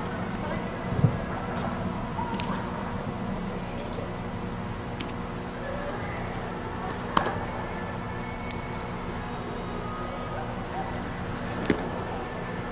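A baseball thuds against a catcher's chest protector.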